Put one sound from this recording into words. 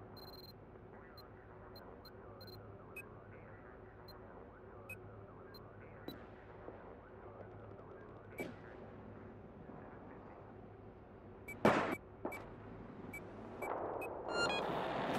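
Short electronic blips tick one after another.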